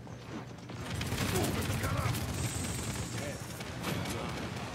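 A gun in a video game fires rapid shots.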